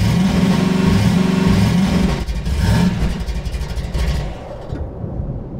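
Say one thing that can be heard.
An engine rumbles loudly and sputters.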